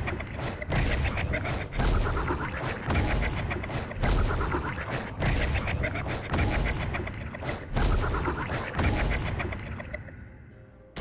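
Magical bursts pop and whoosh again and again.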